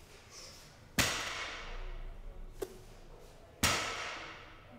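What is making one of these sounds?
Heavy barbell weights slam onto the floor with a ringing metallic clang.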